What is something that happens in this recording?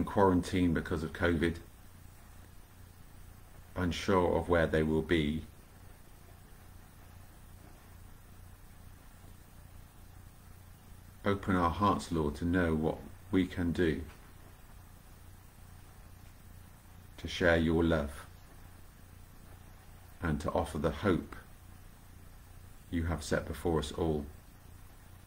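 A middle-aged man speaks calmly and slowly in short phrases, close to a microphone, with long pauses.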